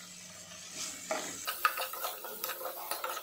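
A spatula stirs and scrapes food in a pan.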